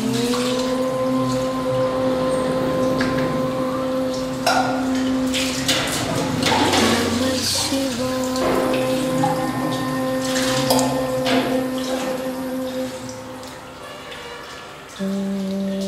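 Wet hands rub and splash water over a stone.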